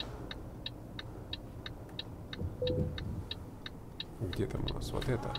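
A turn signal ticks at a steady, quick pace.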